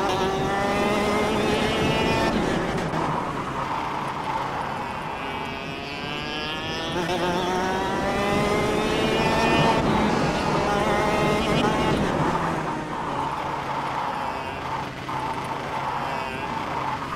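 A kart engine revs high and drops in pitch as it slows for corners.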